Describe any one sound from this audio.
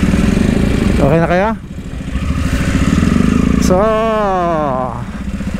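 A motorcycle engine revs up and eases off.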